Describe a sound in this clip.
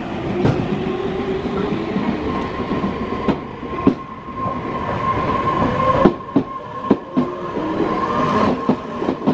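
An electric train's motor hums and whines as the train pulls away.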